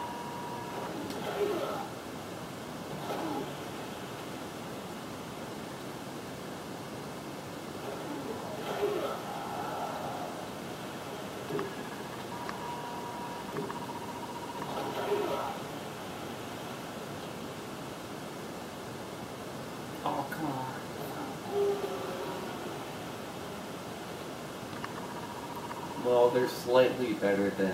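Video game sounds play from a television speaker in short bursts.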